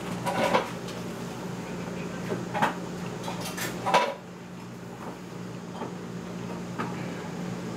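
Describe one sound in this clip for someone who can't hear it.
A young woman slurps noodles close by.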